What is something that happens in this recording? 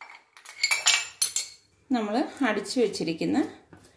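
Ice cubes clink into a glass.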